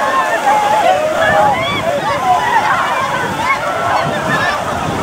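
A large crowd shouts and screams excitedly outdoors.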